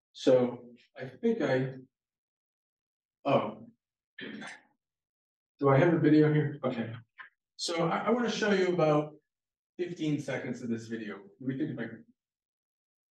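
A man speaks calmly into a microphone, heard through an online call.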